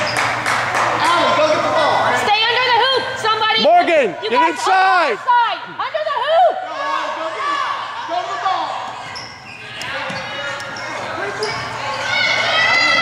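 A crowd of spectators cheers and shouts in a large echoing gym.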